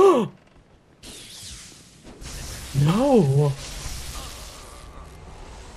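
Electricity crackles and sizzles loudly.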